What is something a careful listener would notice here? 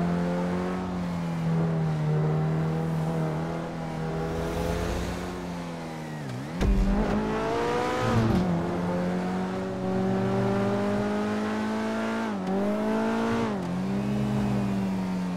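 A sports car engine roars at high revs, dipping briefly as gears shift.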